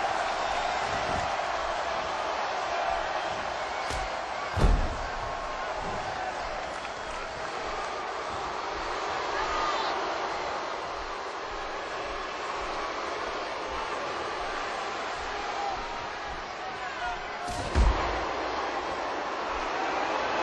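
An arena crowd cheers and roars.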